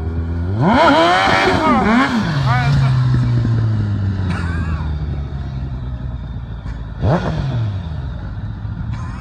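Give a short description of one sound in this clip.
The inline-four motorcycle engine of a three-wheeled roadster revs hard.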